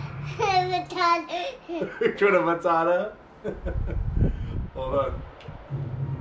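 A toddler girl laughs and squeals excitedly close by.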